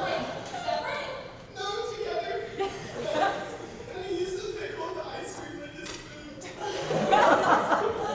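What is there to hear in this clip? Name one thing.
Young women talk with animation in a large echoing hall.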